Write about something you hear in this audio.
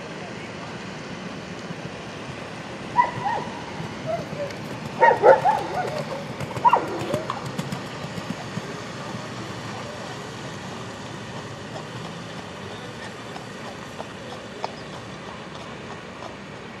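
A horse's hooves thud on soft dirt at a canter.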